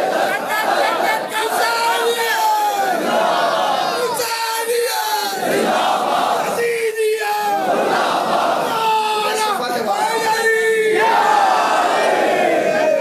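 A man sings loudly into a microphone, heard through loudspeakers.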